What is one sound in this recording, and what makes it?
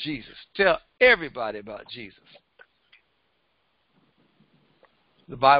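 A middle-aged man speaks with animation into a headset microphone, pausing between phrases.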